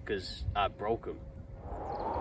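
A young man speaks briefly close by.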